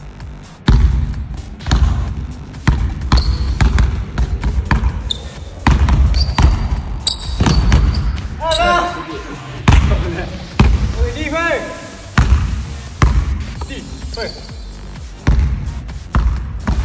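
A basketball bounces repeatedly on a wooden floor in a large echoing hall.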